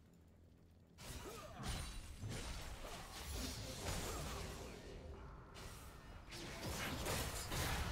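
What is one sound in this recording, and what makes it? Video game combat sound effects clash and burst.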